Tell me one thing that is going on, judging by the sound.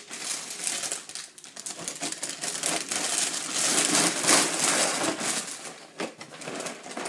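A plastic bag of cereal rustles and crinkles loudly.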